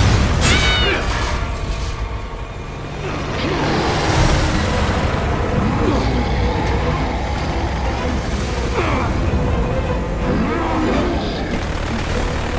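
A helicopter's rotor thumps and roars steadily.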